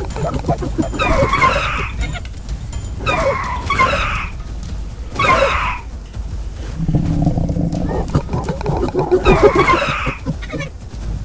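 A raptor screeches in short shrill bursts.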